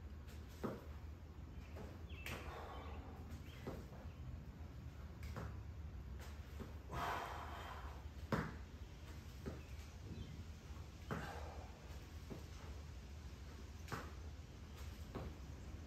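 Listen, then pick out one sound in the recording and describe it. Feet thud on a hard floor during lunges.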